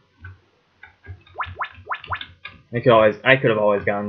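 Short electronic game blips chirp now and then.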